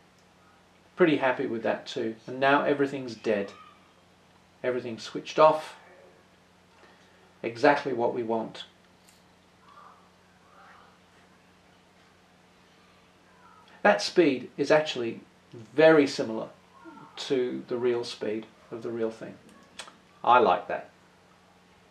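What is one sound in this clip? A man speaks calmly nearby, in short bursts.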